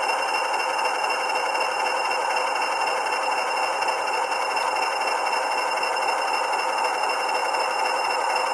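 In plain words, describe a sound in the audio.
A model locomotive's electric motor hums steadily as it moves slowly along the track.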